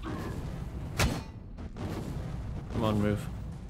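A weapon strikes with a fiery blast.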